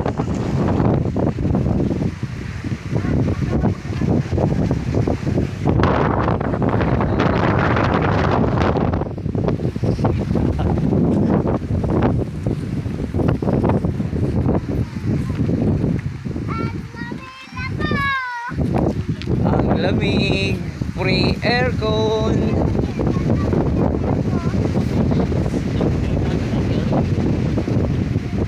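Strong wind blows and rumbles steadily outdoors.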